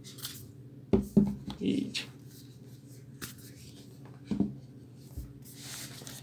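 A book is set down with a soft knock on a wooden surface.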